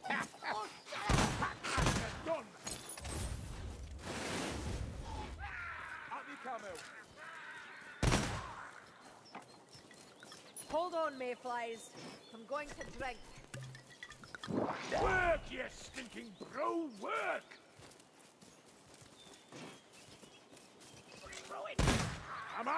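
A shotgun fires with loud, booming blasts.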